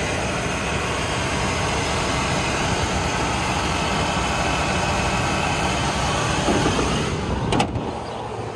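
A car engine idles steadily close by.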